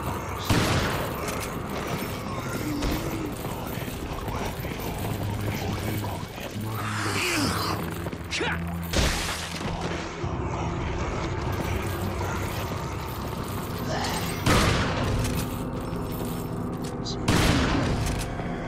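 A shotgun fires loud blasts that echo in a stone hall.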